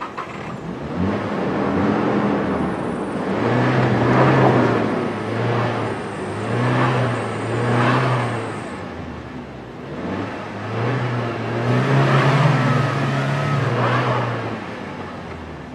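An engine revs hard in bursts.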